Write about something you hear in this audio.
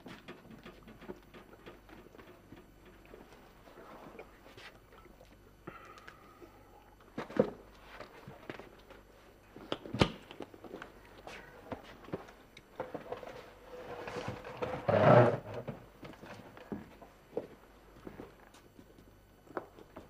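Footsteps knock on a wooden floor indoors.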